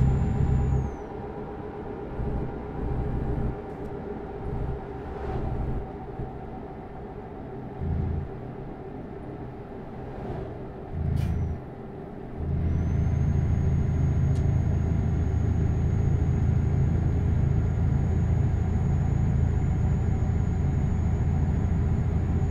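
A truck engine hums and rumbles, rising and falling in loudness.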